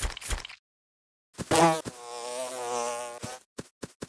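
Bright game chimes and soft popping effects play in quick bursts.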